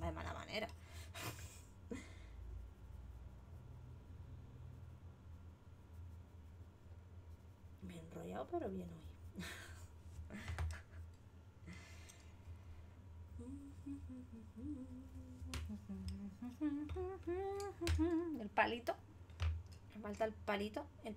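A woman talks calmly into a microphone.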